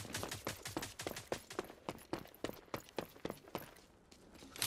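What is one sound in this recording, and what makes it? Quick footsteps run over hard stone.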